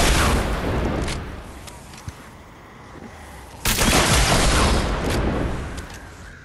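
A weapon fires in loud, noisy bursts.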